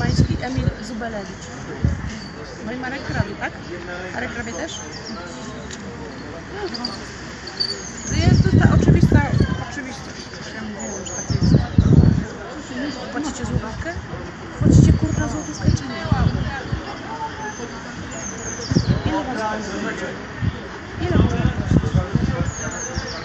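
A young woman talks calmly close to a microphone.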